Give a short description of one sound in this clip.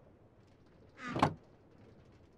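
A wooden chest lid thumps shut.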